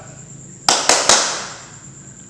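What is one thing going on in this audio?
A man claps his hands a few times.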